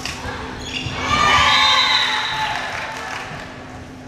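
A crowd in a large echoing gym cheers and shouts.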